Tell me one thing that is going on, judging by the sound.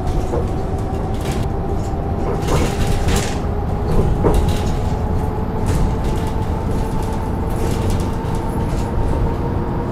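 Bus tyres rumble over the road.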